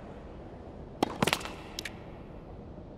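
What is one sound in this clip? A tennis ball bounces on a hard court a few times.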